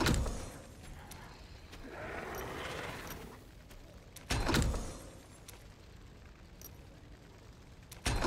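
A game menu gives short clicking chimes.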